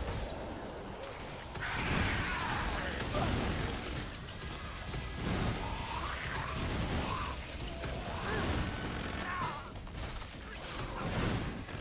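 Guns fire rapidly.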